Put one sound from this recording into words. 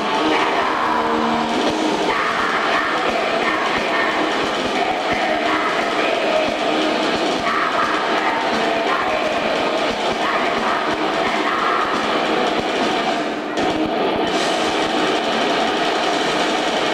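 Drums pound in a steady beat.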